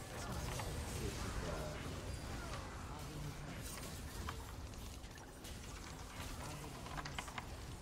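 Game sound effects of spells and hits crackle and whoosh.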